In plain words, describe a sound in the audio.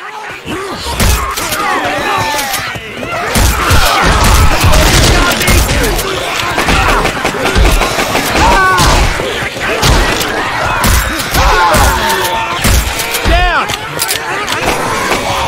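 Zombies growl and shriek.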